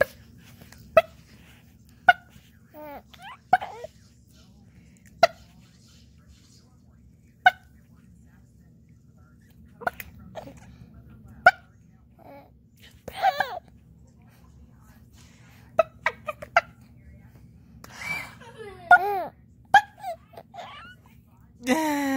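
A baby coos and babbles softly.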